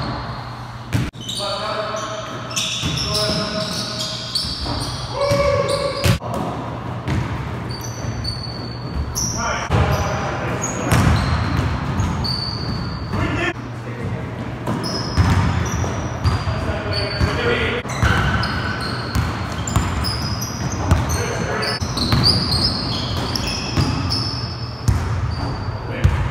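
A basketball bounces on a hard floor with echoing thuds.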